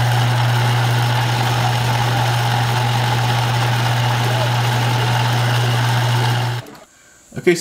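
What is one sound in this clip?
A metal lathe hums steadily as its cutter shaves metal.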